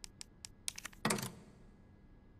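A heavy switch clunks into place.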